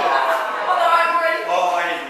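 A man laughs.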